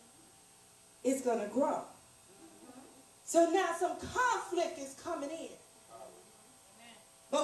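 A woman speaks with feeling into a microphone, heard through a loudspeaker in a small room.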